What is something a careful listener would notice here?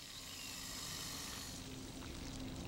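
A snake hisses loudly.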